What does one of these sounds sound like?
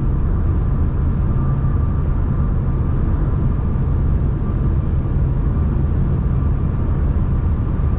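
A car's engine hums steadily as it drives along a motorway, heard from inside.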